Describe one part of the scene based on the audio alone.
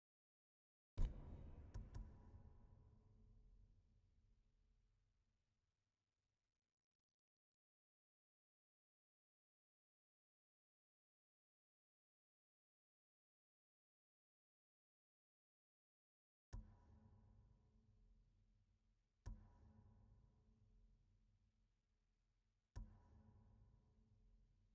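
A soft chime with a low booming swell rings out each time a menu selection changes.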